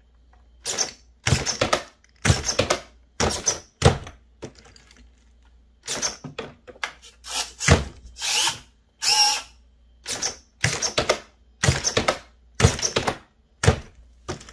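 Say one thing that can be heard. Small electric pumps whir in short, repeated bursts.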